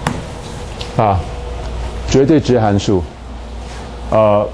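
A middle-aged man speaks through a microphone in a lecturing tone.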